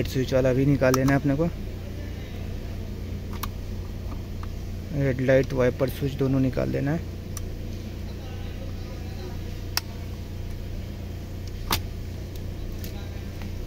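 Plastic connectors click and rattle as they are handled.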